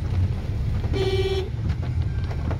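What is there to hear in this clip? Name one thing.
A car horn honks briefly nearby.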